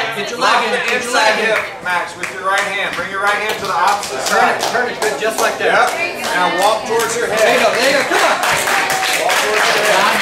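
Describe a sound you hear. Onlookers shout encouragement excitedly nearby.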